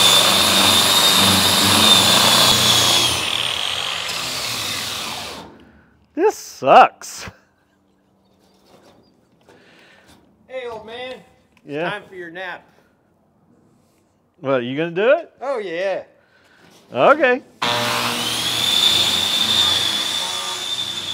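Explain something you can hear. An electric sander whirs loudly against a metal surface.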